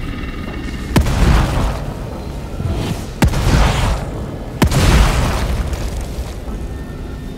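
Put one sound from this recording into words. Loud explosions boom and roar.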